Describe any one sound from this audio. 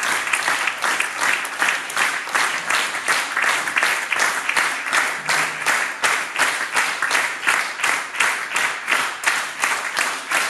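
An audience claps together in a steady, quick rhythm.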